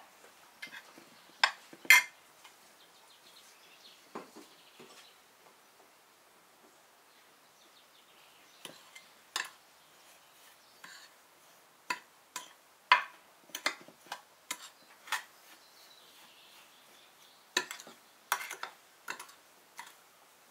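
Dry crumbs rustle as a spoon stirs them.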